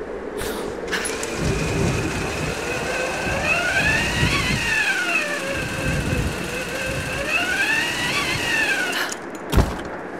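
A rope zipline whirs loudly as a figure slides down it.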